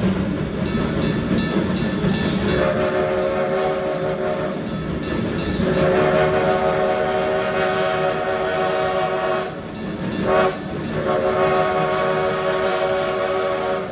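A steam locomotive rumbles and clanks steadily along the track close by.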